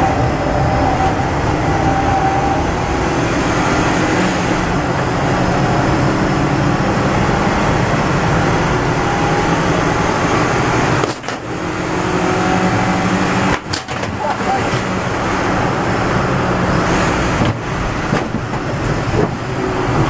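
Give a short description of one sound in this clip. A small car engine roars loudly from inside the cabin, revving up and down through gear changes.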